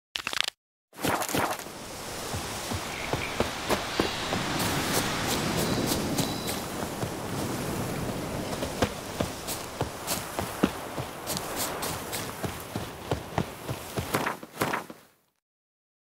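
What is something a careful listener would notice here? Leaves and grass rustle in a gentle wind outdoors.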